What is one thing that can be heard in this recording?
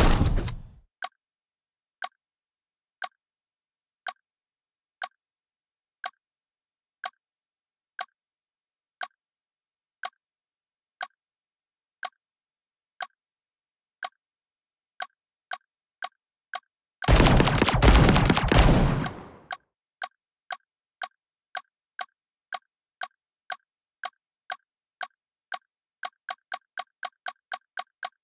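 A bomb timer beeps at a steady pace, getting faster and faster.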